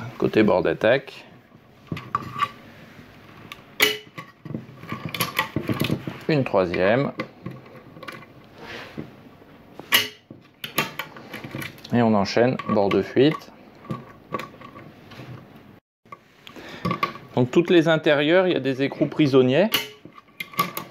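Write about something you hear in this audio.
Metal parts click and clink.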